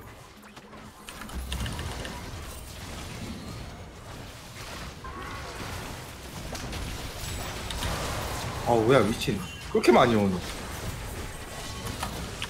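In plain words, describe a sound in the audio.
Magical whooshes and crackling blasts ring out in a fast game battle.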